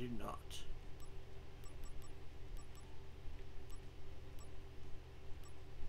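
Soft electronic menu blips tick in quick succession.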